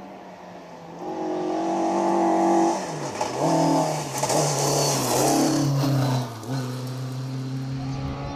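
A rally car engine roars closer, revving hard through gear changes.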